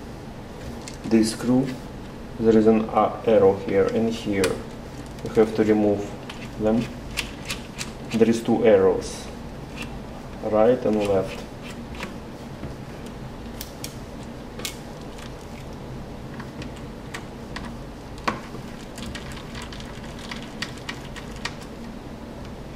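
A small screwdriver clicks and scrapes against metal screws.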